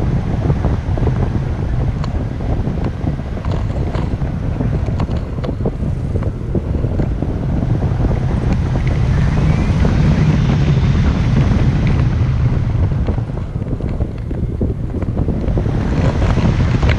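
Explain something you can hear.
Strong wind roars and buffets loudly against a microphone.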